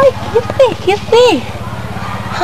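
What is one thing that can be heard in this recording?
A young woman squeals and laughs close by.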